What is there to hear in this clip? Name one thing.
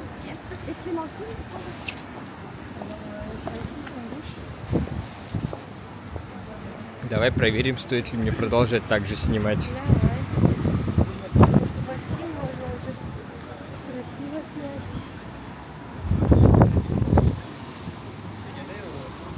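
Footsteps tap on wet pavement outdoors.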